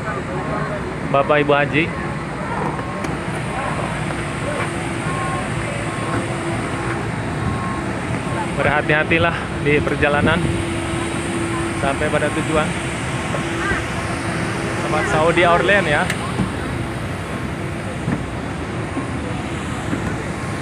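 A steady jet engine hum drones outdoors.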